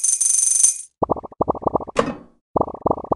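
Balls pop with quick, short blips.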